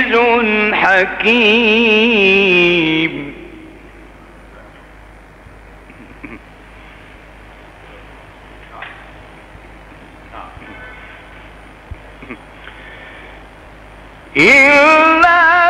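An elderly man chants in a long, wavering melodic voice through a microphone, pausing in between.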